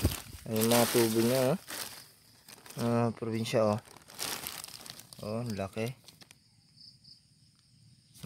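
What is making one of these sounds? A plastic sheet crinkles as a hand pulls it back.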